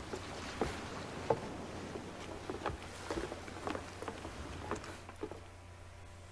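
Footsteps and metal gear clank on wooden boards.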